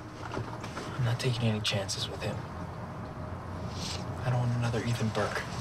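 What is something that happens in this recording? A man speaks quietly and seriously, close by.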